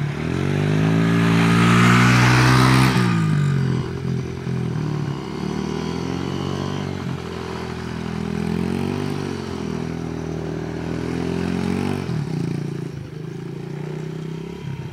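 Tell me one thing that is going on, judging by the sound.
A small motorbike engine revs loudly nearby, then rises and falls in pitch as the rider circles.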